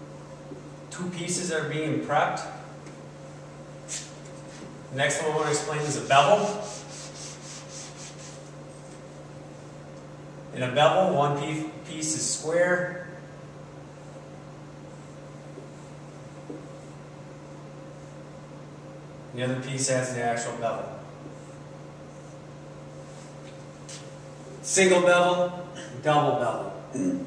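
A man speaks calmly in a room, in short phrases with pauses.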